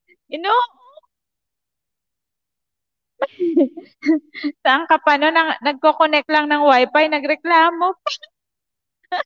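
A young woman talks animatedly into a microphone over an online call.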